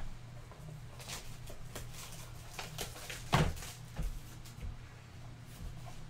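Cellophane wrapping crinkles as it is torn open.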